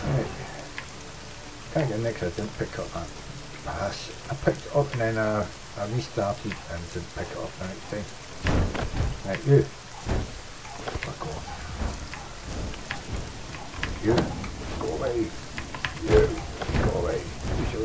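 An elderly man talks calmly into a microphone.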